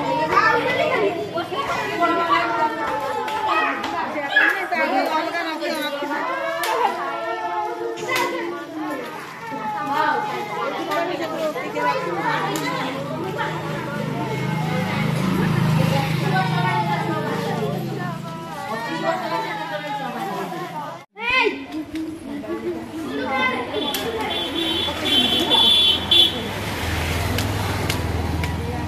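Several women talk and chatter close by.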